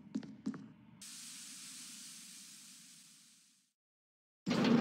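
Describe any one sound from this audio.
Heavy metal doors slide open with a hiss.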